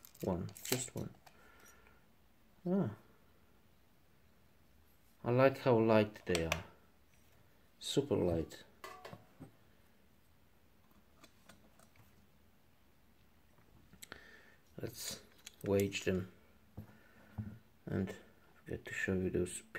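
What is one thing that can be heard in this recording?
Metal bike pedal parts click softly as they are handled.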